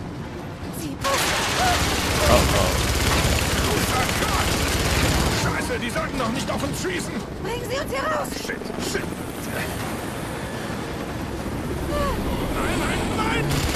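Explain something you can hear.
A truck engine roars as it bounces over rough ground.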